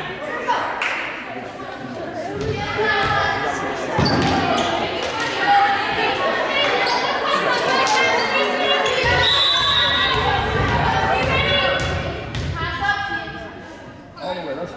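Girls shout and call out in a large echoing gym.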